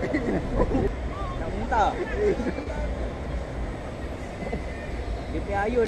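Young men laugh and chatter nearby.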